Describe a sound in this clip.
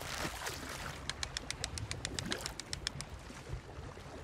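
A fishing reel clicks rapidly as the line winds in.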